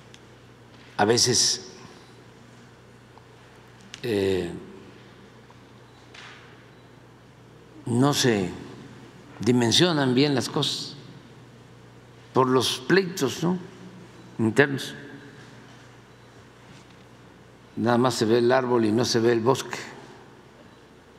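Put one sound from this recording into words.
An elderly man speaks into a microphone in short, calm bursts with long pauses between them.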